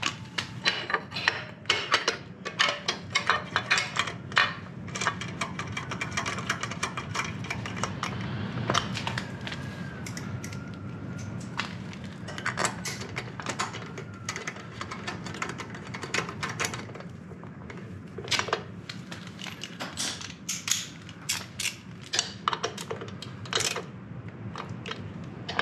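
Fingers tap and click on metal engine parts.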